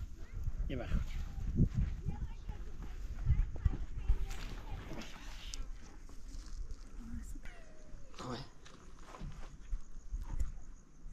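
An elderly man talks calmly nearby.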